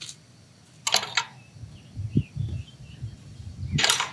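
A wooden gate swings open.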